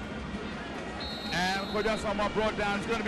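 A referee blows a shrill whistle.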